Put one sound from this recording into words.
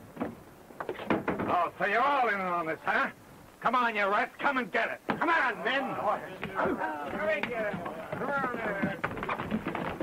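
A man speaks loudly and with feeling, close by.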